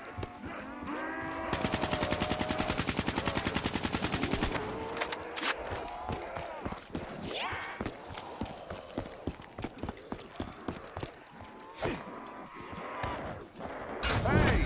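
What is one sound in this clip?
Zombies snarl and groan close by.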